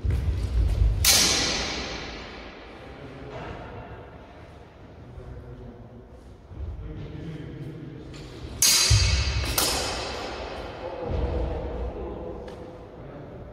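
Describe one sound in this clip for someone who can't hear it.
Swords clash sharply and ring in a large echoing hall.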